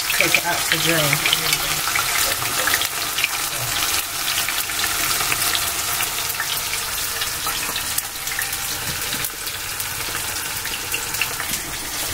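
Food sizzles and crackles in hot oil.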